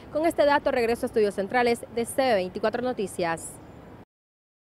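A young woman speaks clearly and steadily into a close microphone, then falls silent.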